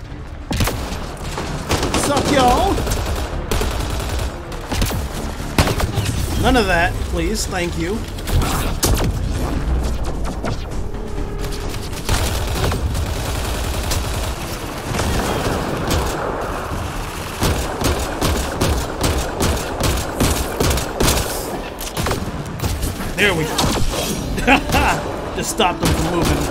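Rapid gunfire crackles and bangs through the game audio.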